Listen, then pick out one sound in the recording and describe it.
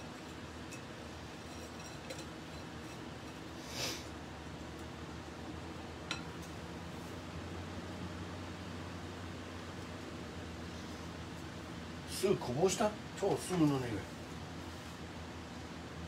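Food sizzles gently in a frying pan.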